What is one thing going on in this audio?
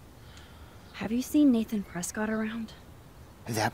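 A young woman asks a question calmly, close by.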